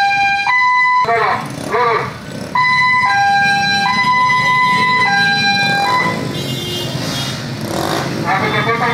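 Motorcycle engines rumble as they ride slowly along a street.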